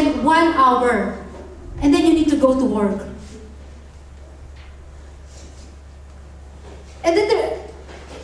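A young woman sings into a microphone, heard through loudspeakers.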